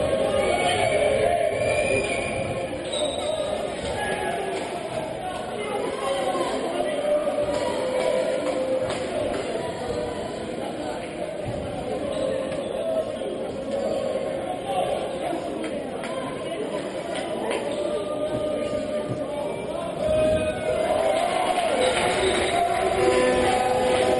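A crowd cheers and chants in a large echoing hall.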